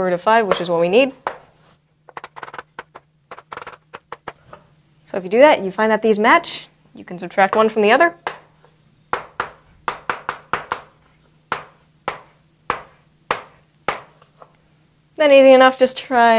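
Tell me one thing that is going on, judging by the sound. A young woman speaks calmly and clearly, as if explaining.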